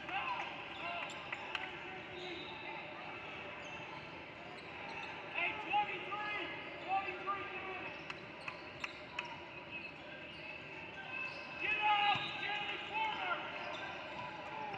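Spectators murmur and call out in the stands.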